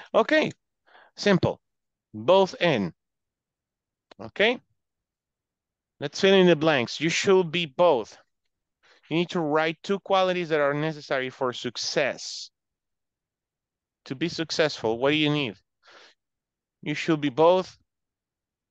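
A woman speaks calmly over an online call, pausing between phrases.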